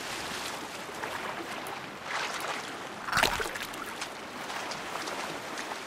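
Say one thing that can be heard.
Water splashes as a figure swims through it.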